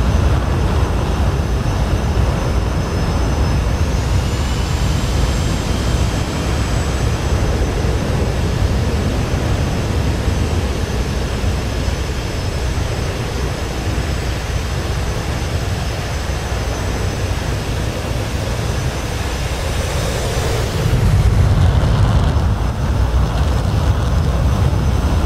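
Jet engines rumble and whine steadily nearby.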